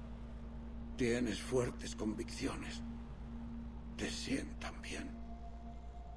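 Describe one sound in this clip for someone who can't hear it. An elderly man answers in a weak, strained voice.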